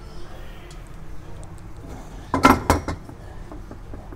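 A metal pot clanks against a stovetop.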